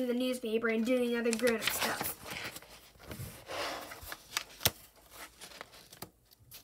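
Pages of a book flip and rustle.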